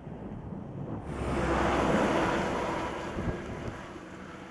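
A truck roars past close by.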